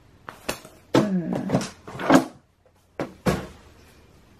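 Books are set down with a soft thud.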